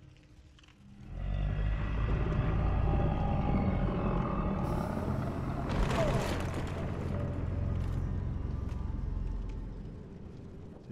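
A huge creature growls with a deep rumble.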